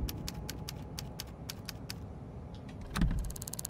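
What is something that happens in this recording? A locked door handle rattles.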